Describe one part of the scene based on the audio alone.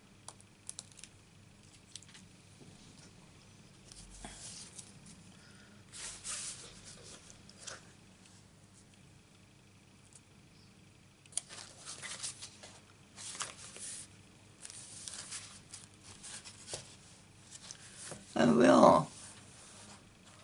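Paper rustles and slides as hands handle card stock.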